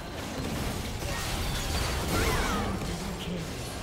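Magic spells crackle and burst in a video game battle.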